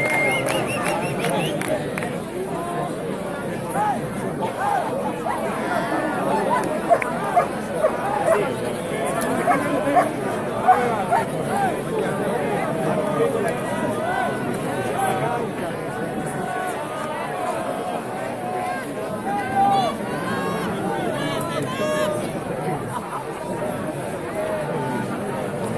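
Many men and women talk loudly all around, close by.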